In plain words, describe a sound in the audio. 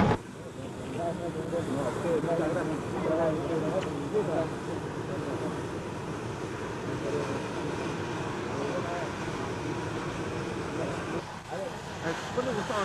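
A crowd of men and women chatters outdoors close by.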